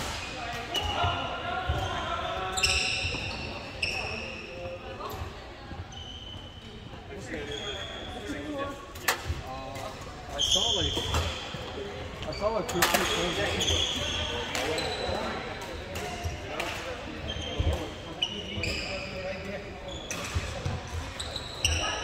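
Rackets smack shuttlecocks in a large echoing hall.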